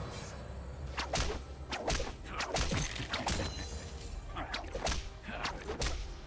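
Short game sound effects click and whoosh.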